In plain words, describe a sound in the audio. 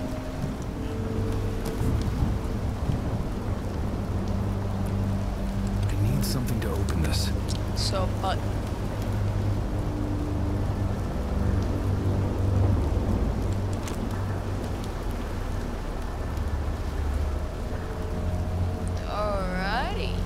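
A young streamer talks quietly close to a microphone.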